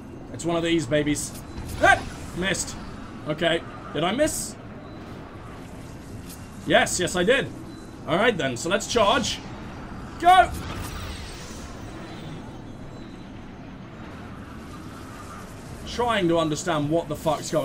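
A magic portal hums and crackles with energy.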